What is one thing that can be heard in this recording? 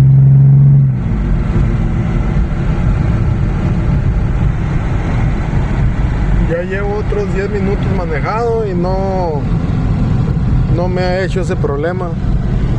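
A car engine hums low and steady while cruising.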